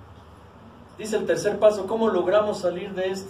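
A middle-aged man speaks with animation, heard close in a small room.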